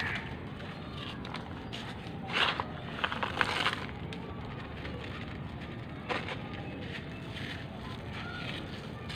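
Hands scoop and rustle through loose gritty granules.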